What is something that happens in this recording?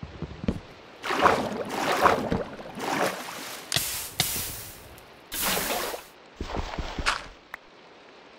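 Water splashes loudly in short bursts.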